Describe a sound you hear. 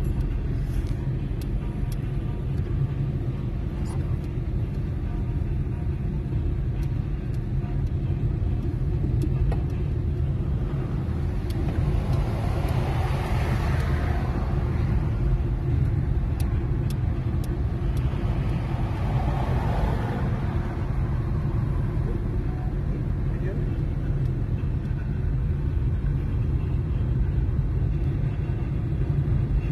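A car engine hums steadily with a low rumble from inside the car.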